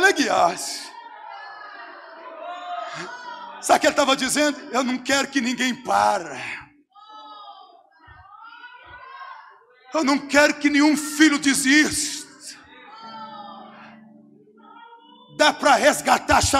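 A man preaches loudly and with passion into a microphone, heard through loudspeakers in an echoing hall.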